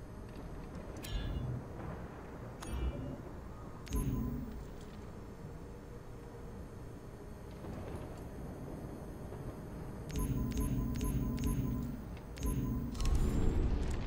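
Menu selections chime with short electronic blips.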